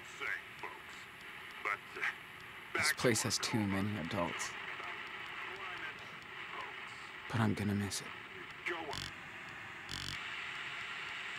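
A radio hisses with static.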